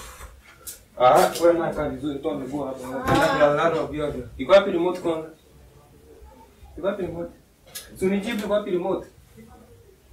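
A young man speaks angrily and loudly nearby.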